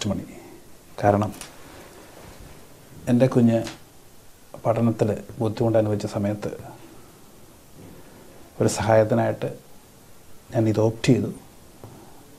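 A middle-aged man speaks calmly and deliberately into a close microphone, with pauses between phrases.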